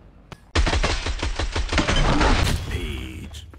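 A rapid burst of gunfire rings out loudly.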